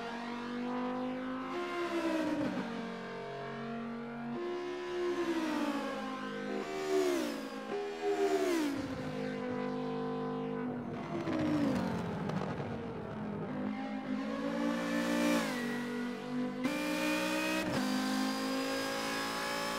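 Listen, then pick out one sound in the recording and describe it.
A racing car engine roars, rising and falling in pitch as it revs and shifts gears.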